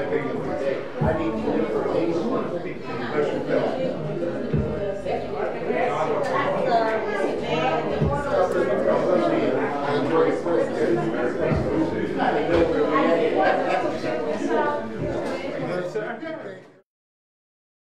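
Several men and women chatter and greet each other nearby.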